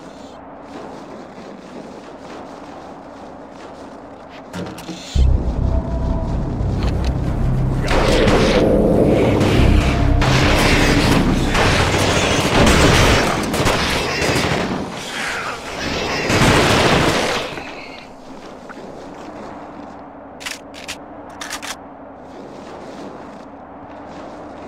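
Boots crunch steadily through snow.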